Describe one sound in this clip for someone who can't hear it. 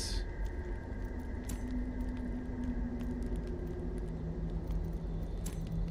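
A campfire crackles softly.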